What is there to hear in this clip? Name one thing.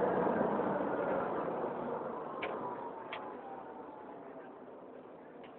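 A train's motor whines and drops in pitch as the train slows to a stop.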